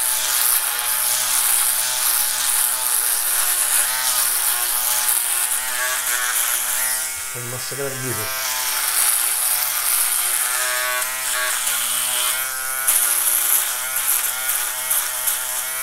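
An electric shaver buzzes close by.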